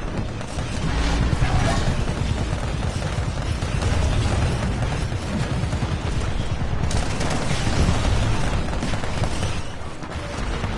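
Explosions rumble and boom nearby.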